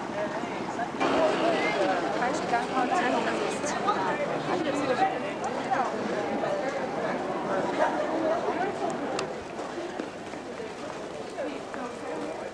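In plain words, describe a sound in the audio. A crowd of people chatter around outdoors.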